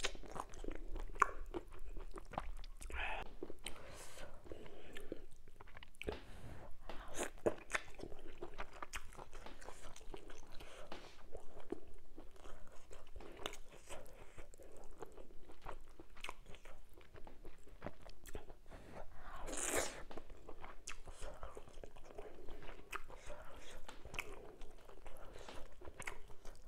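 Fingers squish and pick through soft, wet food close by.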